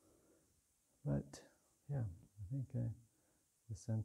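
A man speaks calmly and slowly into a close microphone in a large, echoing hall.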